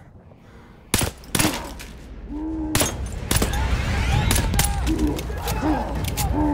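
A pistol fires several sharp shots close by.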